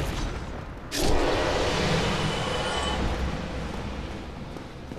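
A loud magical burst whooshes and hisses.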